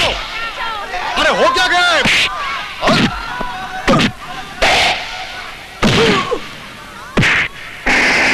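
Punches land hard in a fistfight.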